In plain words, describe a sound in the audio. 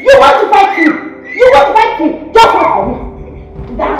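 A young woman shouts loudly and excitedly nearby.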